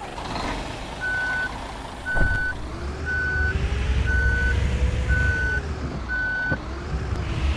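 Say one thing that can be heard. A warning beeper beeps at an even pace.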